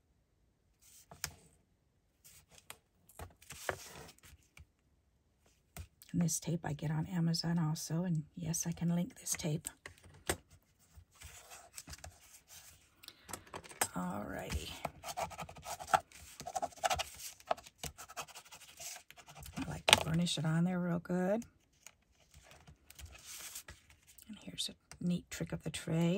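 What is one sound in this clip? Hands shuffle and slide card stock.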